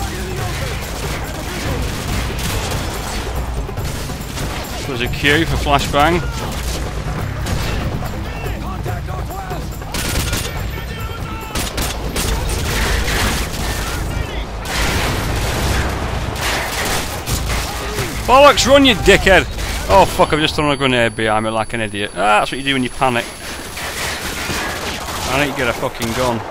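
Explosions boom with a low rumble.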